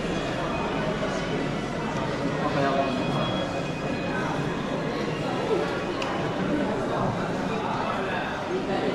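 A crowd of people chatter and murmur all around in an echoing indoor hall.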